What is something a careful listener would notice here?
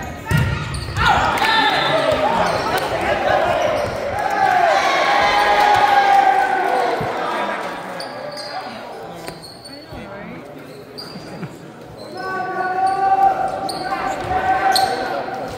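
Young female players cheer and shout together.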